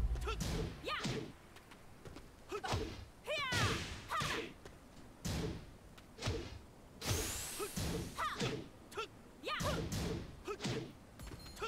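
Punches and kicks land with sharp smacks and thuds.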